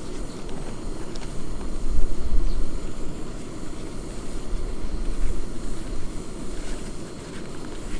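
A gas camping stove hisses steadily.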